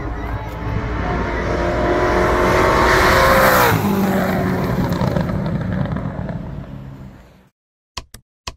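A race car engine roars loudly as the car speeds past and fades into the distance.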